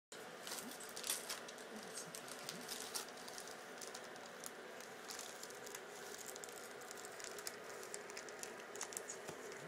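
Book pages rustle and flap as they are turned.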